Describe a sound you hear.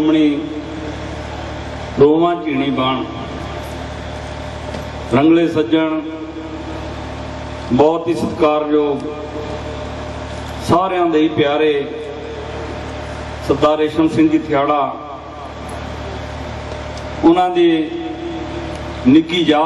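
A middle-aged man recites through a microphone and loudspeaker in short phrases with pauses.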